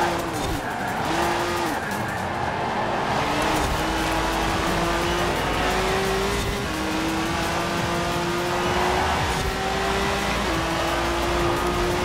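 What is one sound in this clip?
A car engine revs hard, its pitch rising and dropping with each gear change.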